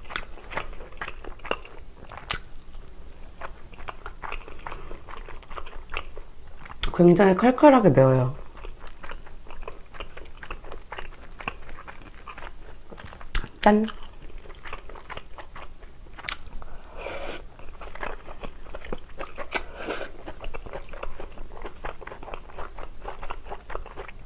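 A young woman chews and slurps noodles close to a microphone.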